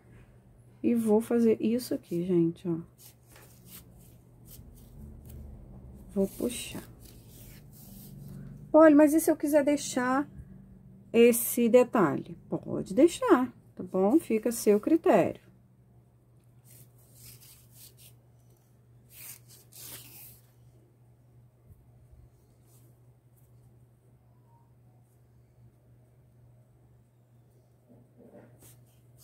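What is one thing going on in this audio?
A fabric ribbon rustles softly as it is handled and folded.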